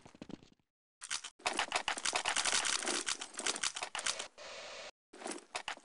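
Another set of running footsteps patters on stone nearby.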